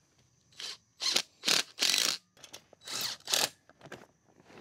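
A cordless drill whirs in short bursts, driving a screw.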